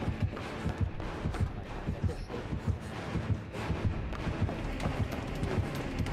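Footsteps run across a wooden floor.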